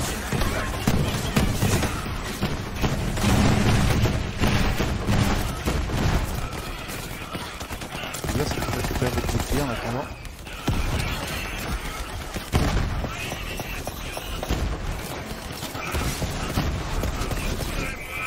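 Guns fire rapidly in bursts.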